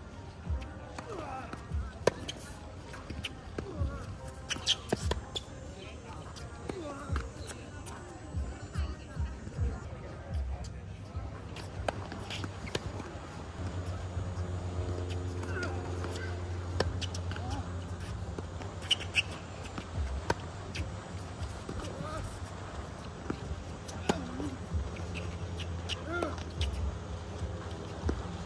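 Tennis balls are struck with rackets in a sharp, repeated pop.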